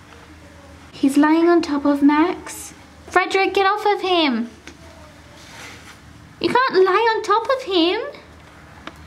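A cat meows loudly and repeatedly, close by.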